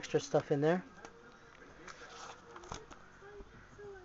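Playing cards tap and slide softly against each other.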